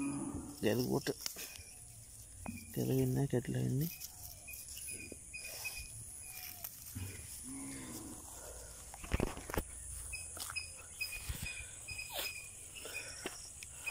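Grass blades rustle and crackle as a hand pulls at them.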